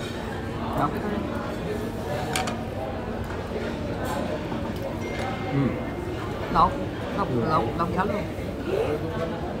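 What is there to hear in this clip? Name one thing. Men and women chatter in the background.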